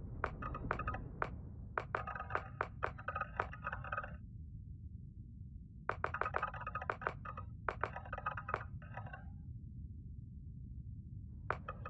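Short menu clicks tick in quick bursts as a setting is changed.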